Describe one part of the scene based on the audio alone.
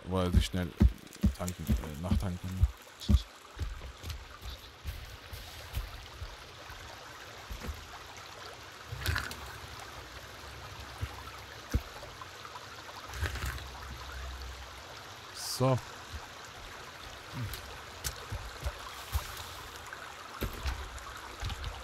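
Keyboard keys click and clatter under typing fingers.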